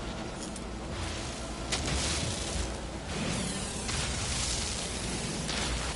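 A video game's mining laser hisses and crackles against a crystal.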